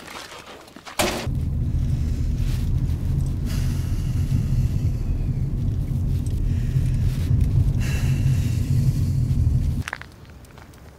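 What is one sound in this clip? A car engine rumbles steadily up close.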